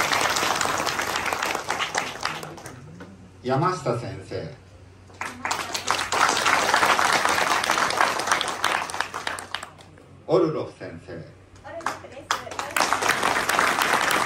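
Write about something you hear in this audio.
An audience claps in a large echoing hall.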